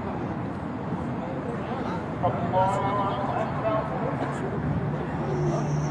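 A young man shouts excitedly nearby.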